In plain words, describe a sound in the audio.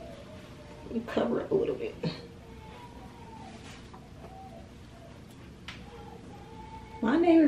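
A young woman speaks close by in short, expressive bursts.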